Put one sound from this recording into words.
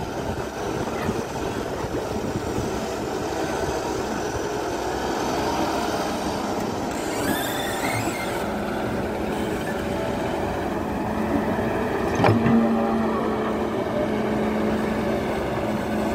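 An excavator's diesel engine rumbles steadily close by.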